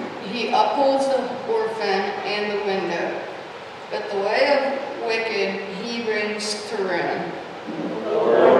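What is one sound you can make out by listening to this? A young boy reads aloud through a microphone in an echoing room.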